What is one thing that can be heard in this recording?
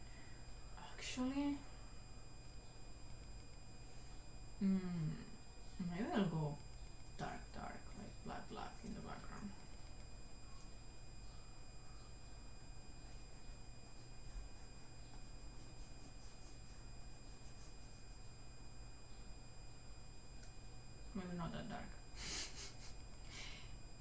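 A young woman speaks calmly into a close microphone, with pauses.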